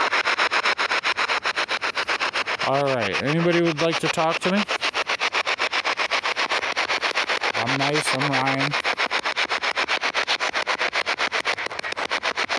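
A portable radio sweeps rapidly through stations, giving off fast, choppy bursts of static.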